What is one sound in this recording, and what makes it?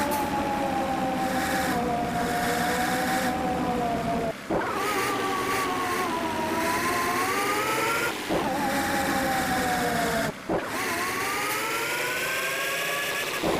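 A bus engine hums and rises in pitch, dropping briefly as gears change.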